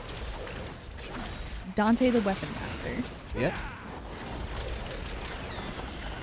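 Blades slash and clash in a fast fight.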